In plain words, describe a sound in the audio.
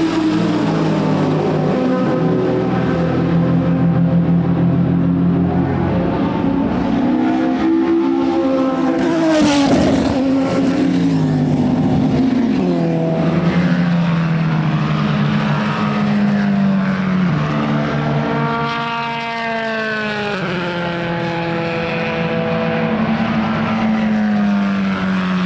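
Racing car engines roar and rev loudly, rising and falling in pitch as they pass by.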